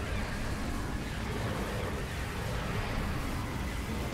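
A creature bursts apart with a loud blast.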